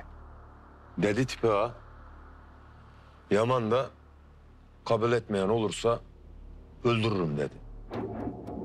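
A man speaks sharply and tensely, close by.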